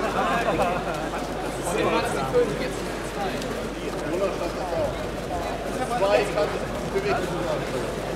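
A crowd of spectators murmurs in a large indoor hall.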